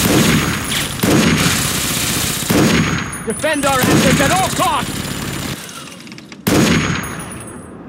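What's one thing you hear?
A rifle fires loud booming shots that echo.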